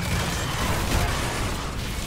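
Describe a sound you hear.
Flames roar in a burst.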